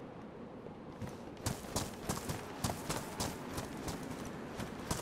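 Footsteps crunch on dry grass and earth.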